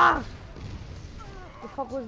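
An explosion bursts loudly in a video game.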